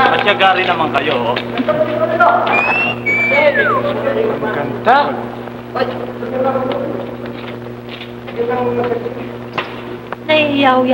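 Several men and women talk and exclaim excitedly, close by, with an old muffled tone.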